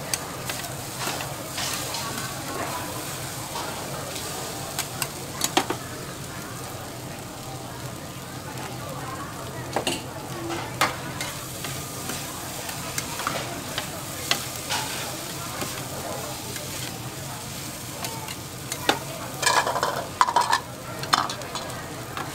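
Metal spatulas scrape and clatter on a hot griddle.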